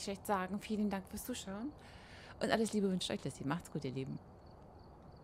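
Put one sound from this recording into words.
A middle-aged woman talks with animation into a microphone.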